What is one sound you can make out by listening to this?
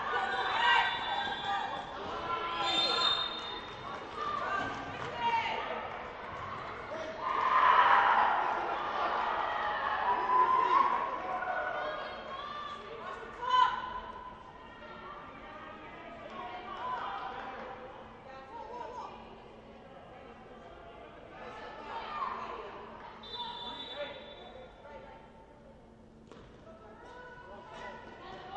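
Young women players shout and call to each other across the hall.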